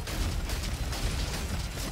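An explosion booms in a video game.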